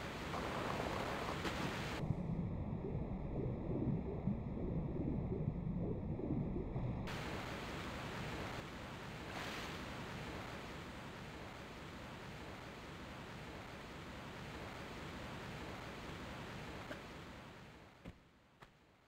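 Water roars down steadily from a waterfall.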